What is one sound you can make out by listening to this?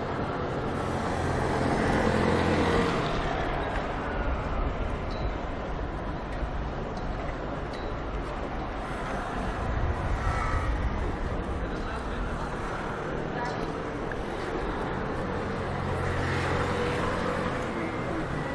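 Vehicles pass by on a wet street with a hiss of tyres.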